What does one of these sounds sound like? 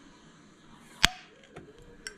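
A metal jar lid pops open with a sharp click.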